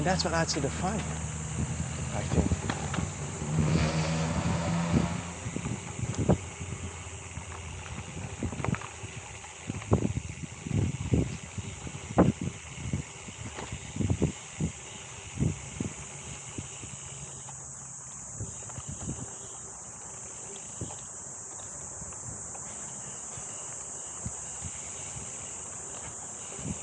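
Bicycle tyres roll and bump along a rough dirt trail.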